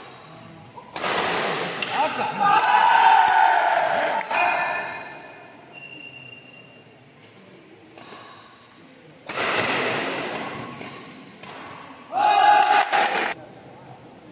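A crowd of spectators cheers and shouts loudly in an echoing hall.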